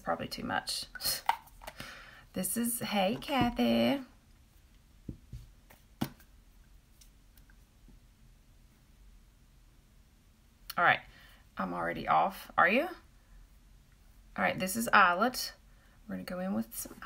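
A woman talks calmly and close.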